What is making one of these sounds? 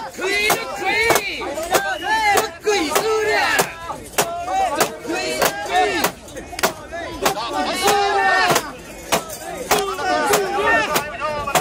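A large crowd of men chants loudly in rhythm outdoors.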